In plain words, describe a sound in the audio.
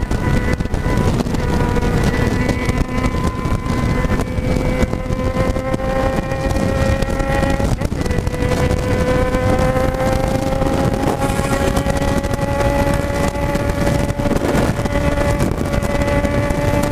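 A motorcycle engine hums steadily, its pitch slowly rising.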